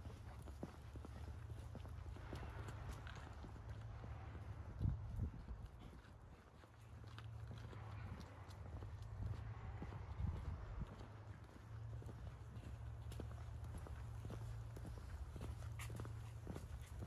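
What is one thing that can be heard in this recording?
Footsteps fall on cobblestones.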